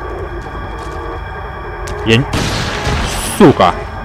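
A shotgun fires a loud blast.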